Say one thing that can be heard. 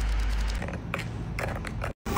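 A spoon scrapes and clinks inside a cup.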